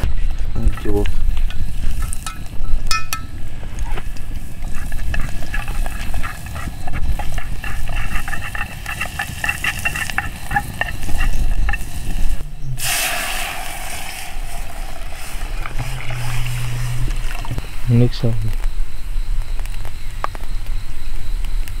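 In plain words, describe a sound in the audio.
A wood fire crackles under a pot.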